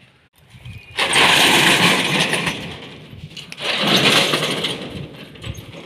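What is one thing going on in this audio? A metal roller shutter rattles loudly as it is pulled.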